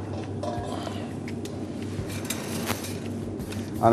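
A metal lid clatters onto a pot.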